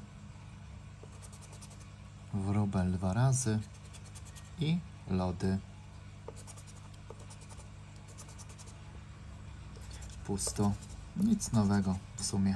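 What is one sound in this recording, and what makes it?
A coin scrapes across a scratch card with a soft rasping.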